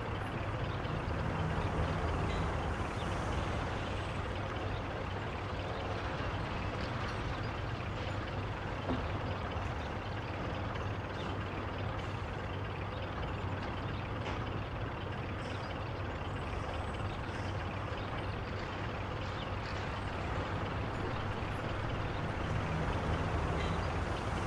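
An old car engine idles with a low, steady rumble.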